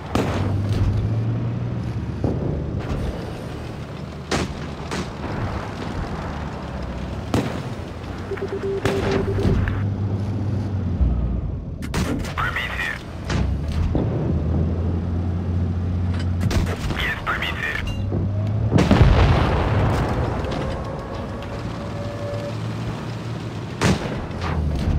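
Tank guns fire with sharp bangs.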